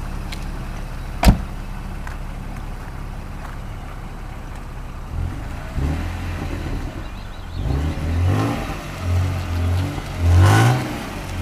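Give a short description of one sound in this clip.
A car engine idles and then revs loudly in bursts.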